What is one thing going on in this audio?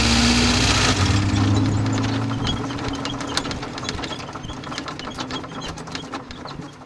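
Car wheels bump and rattle over grass.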